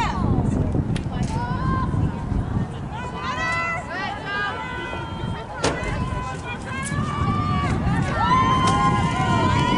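Lacrosse sticks clack against each other.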